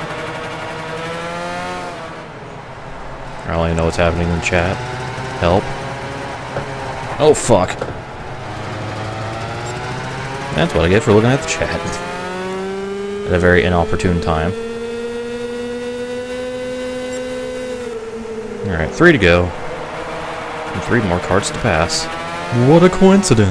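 A kart engine buzzes and whines, rising and falling in pitch as it speeds up and slows down.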